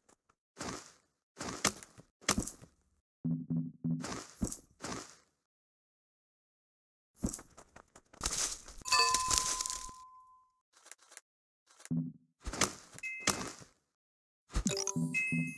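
Short chimes and swooshing sound effects play in bursts.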